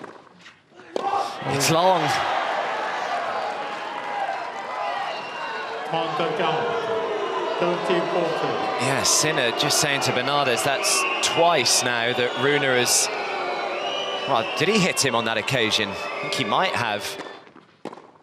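A large crowd roars and whistles loudly.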